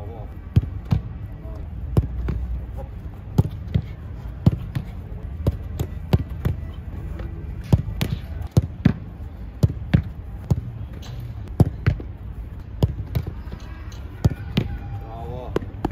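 A ball is kicked hard, again and again, in quick succession.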